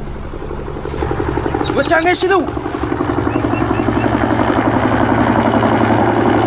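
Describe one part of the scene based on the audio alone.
A helicopter's rotor chops steadily and grows louder as it approaches.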